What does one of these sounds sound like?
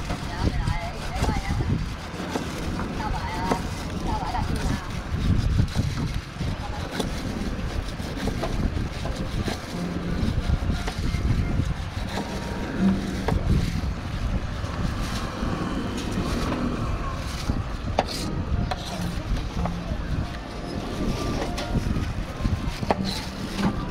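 A knife slices through a pineapple with soft scraping cuts.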